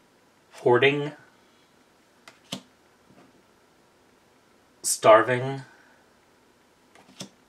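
Playing cards slide and tap softly on a wooden table.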